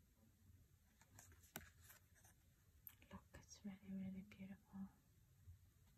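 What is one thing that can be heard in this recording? Stiff cards slide and tap against each other.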